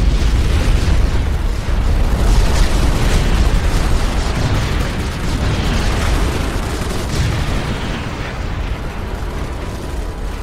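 Laser weapons fire in rapid bursts during a battle.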